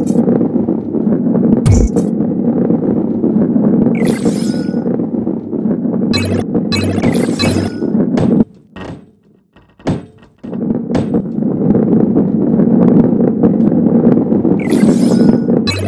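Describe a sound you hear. A ball rolls with a low, steady rumble.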